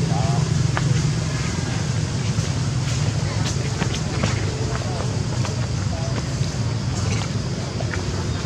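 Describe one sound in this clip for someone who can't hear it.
Dry leaves rustle and crackle under a monkey's feet.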